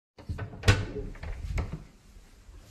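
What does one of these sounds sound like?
A door handle clicks and rattles close by.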